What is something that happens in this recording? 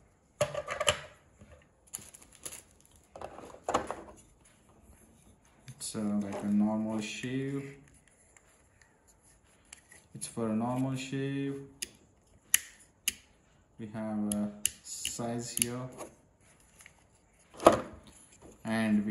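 Plastic parts click and rattle as they are handled.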